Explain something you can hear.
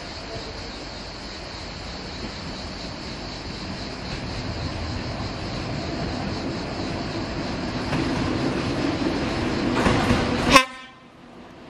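A train approaches, its rumble slowly growing louder.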